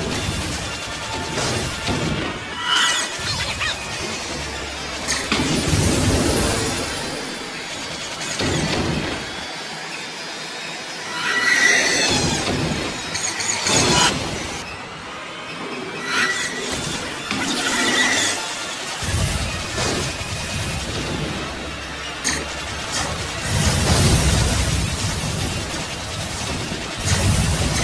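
Laser blasts fire rapidly from a starfighter.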